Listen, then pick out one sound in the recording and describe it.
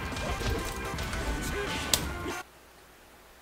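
Punches and kicks thud in a fast fighting game.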